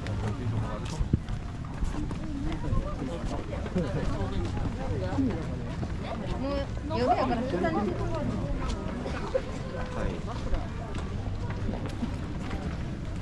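Adults chat with one another nearby outdoors.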